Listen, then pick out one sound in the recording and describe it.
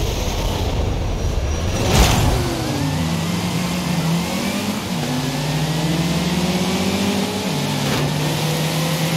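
A car engine revs hard and shifts up through the gears.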